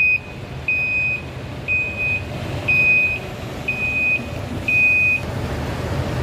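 A dump truck's reversing alarm beeps.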